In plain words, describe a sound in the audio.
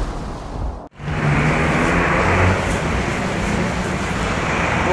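A motorcycle engine idles close by with a steady rumble.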